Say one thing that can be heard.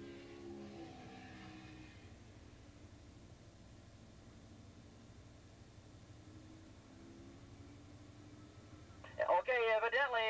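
Motorcycle engines race and whine in the distance.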